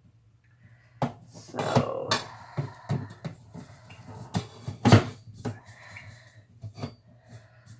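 A metal bowl clanks against a stand mixer.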